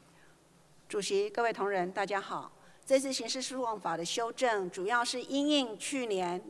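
A middle-aged woman speaks steadily into a microphone.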